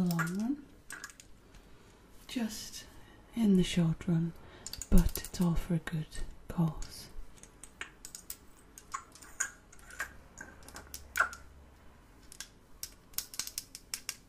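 A glass dropper clicks and taps against a small glass bottle.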